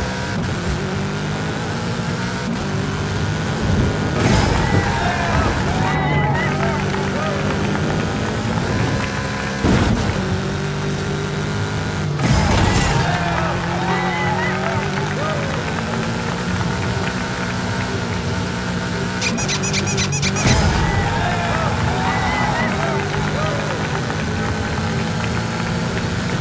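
A racing car engine roars steadily and revs up and down.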